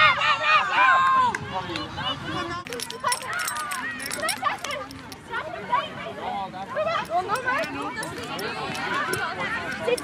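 A crowd of girls and young women cheers and shouts outdoors.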